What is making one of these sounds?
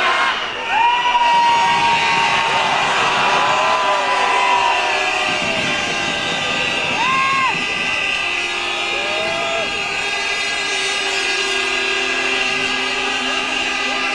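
Fireworks whistle as they shoot up into the sky.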